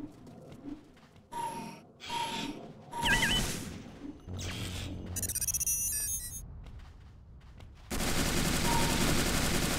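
Footsteps tread on sandy ground.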